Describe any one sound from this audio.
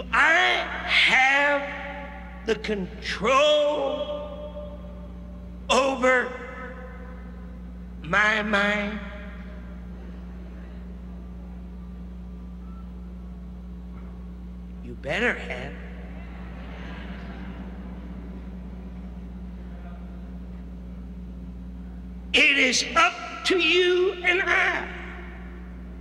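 A man preaches loudly and forcefully through a microphone in short bursts with long pauses.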